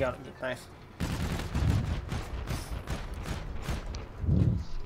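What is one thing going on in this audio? An assault rifle fires rapid bursts.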